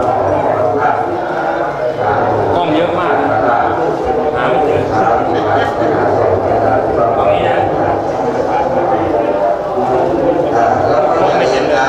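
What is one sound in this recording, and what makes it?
A man speaks calmly nearby.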